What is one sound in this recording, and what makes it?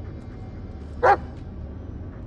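A dog barks once nearby.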